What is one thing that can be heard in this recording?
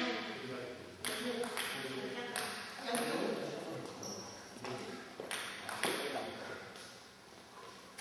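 A table tennis ball clicks back and forth on paddles and table in an echoing hall.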